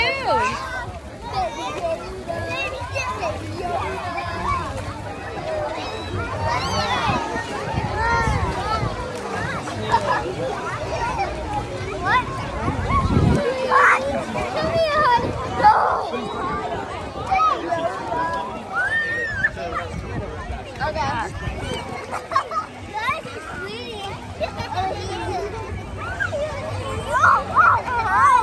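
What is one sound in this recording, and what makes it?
Children shout and squeal nearby.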